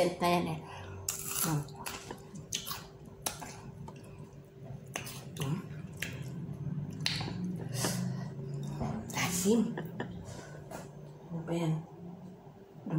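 A woman chews and smacks her lips loudly.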